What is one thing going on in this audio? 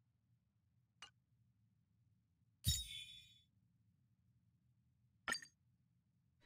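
Short game interface clicks sound.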